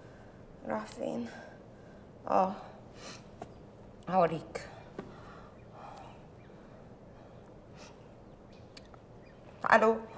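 A young woman speaks in short, emotional bursts close by.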